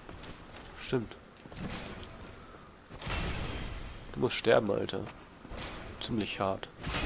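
Metal swords clash and strike.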